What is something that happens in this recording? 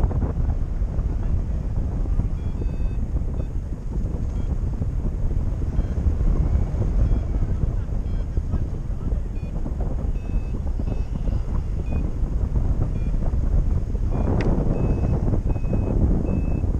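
Strong wind roars and buffets against the microphone outdoors.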